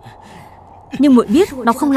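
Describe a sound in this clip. A young man speaks tensely, close by.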